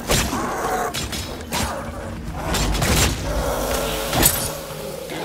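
A wooden club thuds against a body.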